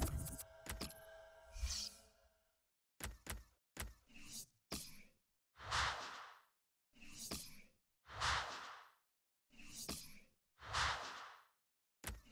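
Game menu clicks tick sharply, one after another.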